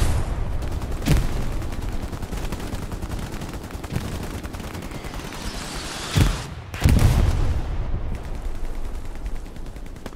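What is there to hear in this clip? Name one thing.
Leaves and branches rustle as someone pushes through bushes.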